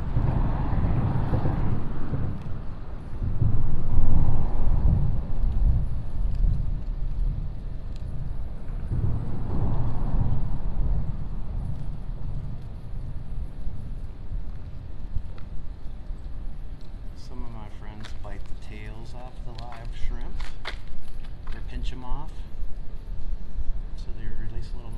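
Water laps gently against a wall.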